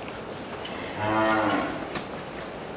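A cow moos nearby.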